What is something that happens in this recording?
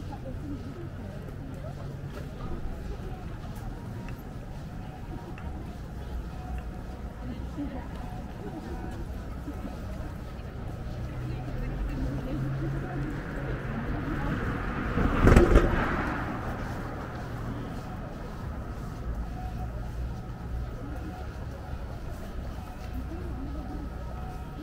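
Footsteps scuff on a paved walkway outdoors.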